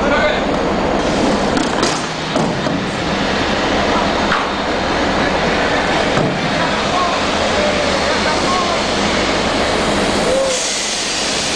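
Gas hisses loudly as a life raft inflates.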